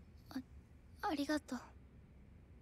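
A young woman speaks softly and briefly.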